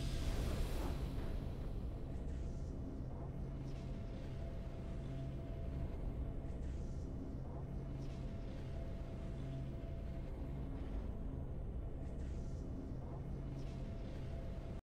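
Soft game music hums steadily.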